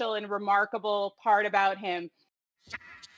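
A woman speaks calmly and clearly over an online call.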